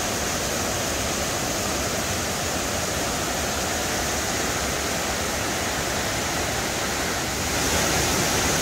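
A waterfall roars steadily and grows a little louder near the end.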